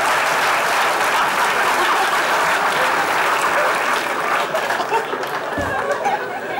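A large audience laughs loudly.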